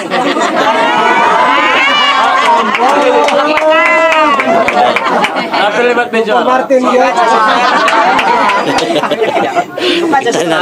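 Several young women and men sing together loudly, close by.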